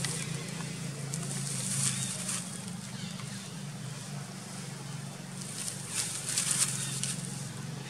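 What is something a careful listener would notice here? Dry leaves rustle and crunch as a small monkey moves over the ground.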